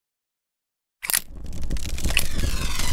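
A metal lighter clicks open and sparks.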